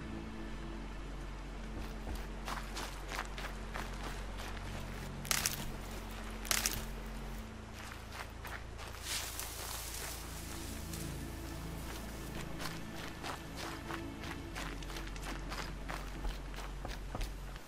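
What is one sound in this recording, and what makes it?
Footsteps run quickly through grass and dirt.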